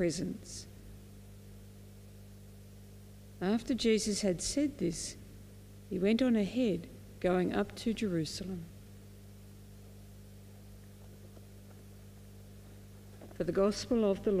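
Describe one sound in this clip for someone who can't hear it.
An elderly woman reads out slowly and calmly through a microphone, with long pauses.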